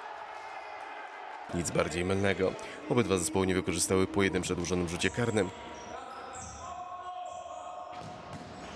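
A ball is kicked on a hard indoor floor in an echoing hall.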